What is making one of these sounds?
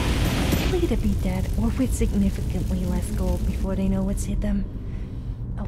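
Flames roar around a burning figure.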